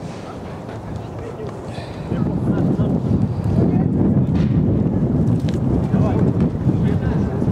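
Outdoors, wind rumbles against the microphone.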